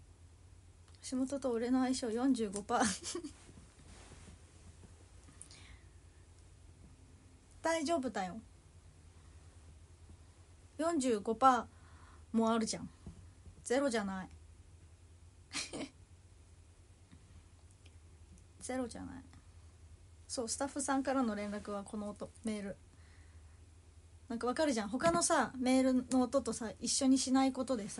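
A young woman talks close to the microphone in short bursts, with pauses between them.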